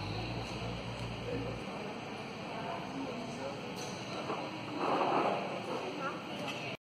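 A low murmur of distant voices fills a large indoor hall.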